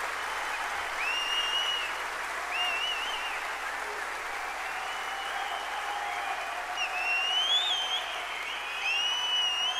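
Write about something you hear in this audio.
People in a crowd whistle shrilly.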